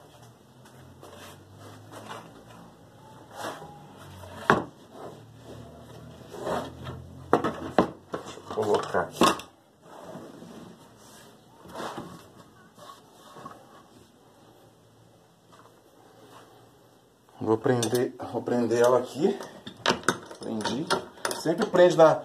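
A wooden board knocks and scrapes against a workbench.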